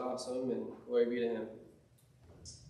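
A young man speaks calmly in an echoing room.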